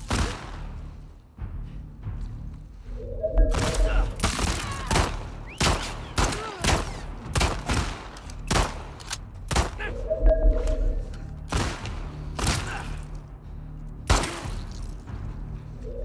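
A pistol fires in sharp, repeated shots.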